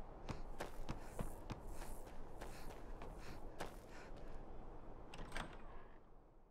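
Footsteps crunch on snow and thump on wooden steps.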